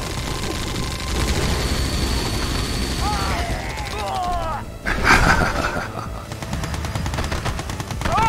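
Gunfire and explosions rattle in a battle game.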